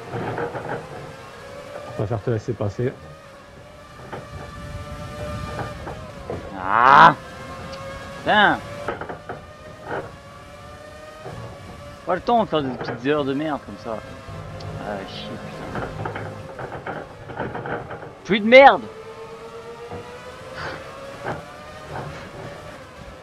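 A racing car engine whines at high revs, rising and dropping in pitch with gear changes.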